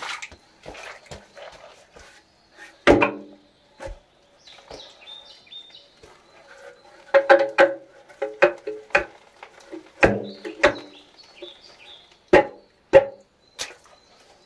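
A wooden pole thuds against the ground and a dirt wall.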